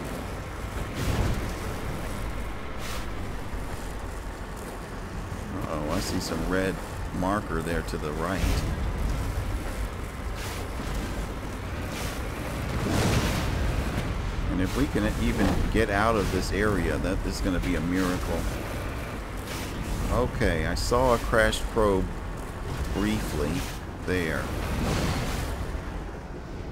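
Wheels thud and bump over rocks.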